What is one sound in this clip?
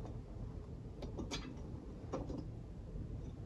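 A paper filter clicks and rustles against a glass jug.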